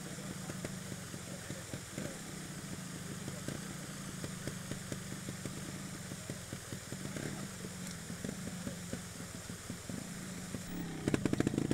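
A trials motorbike engine idles and revs.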